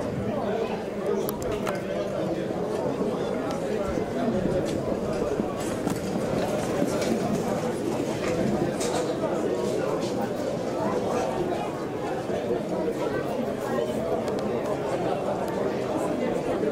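Horses' hooves thud on a dirt track as a trotting cart rolls past.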